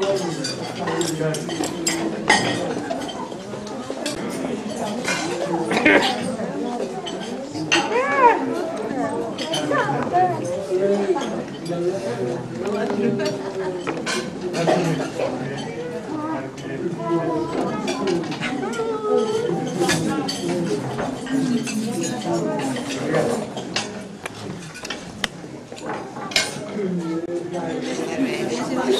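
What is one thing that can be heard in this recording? A crowd of men and women chatters loudly indoors.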